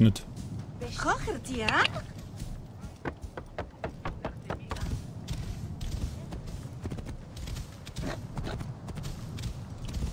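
Hooves clop steadily on sandy ground.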